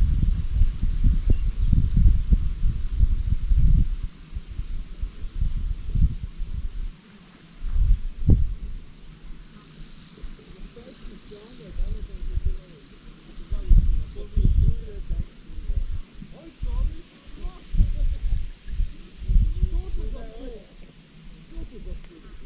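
Tall grass rustles in the wind.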